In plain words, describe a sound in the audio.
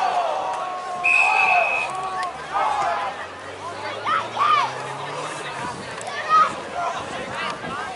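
Spectators cheer and shout from the sideline.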